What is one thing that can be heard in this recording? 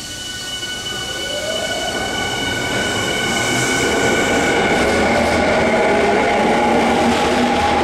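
A train's wheels rumble louder as it rolls into an echoing station.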